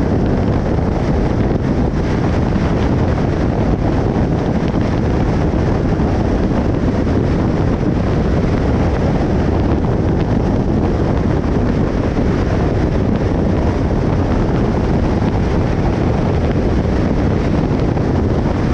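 Wind rushes past a moving car.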